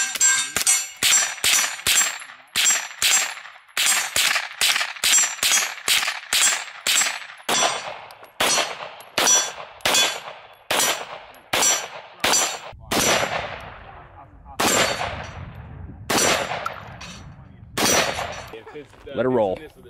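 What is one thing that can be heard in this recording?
Gunshots crack one after another outdoors, each echoing briefly.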